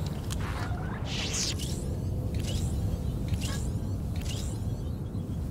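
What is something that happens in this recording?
Laser blaster shots zap in quick bursts.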